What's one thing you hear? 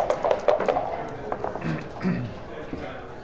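Dice clatter onto a wooden board.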